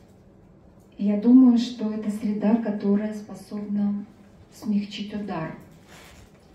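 A woman speaks expressively into a microphone, reading aloud.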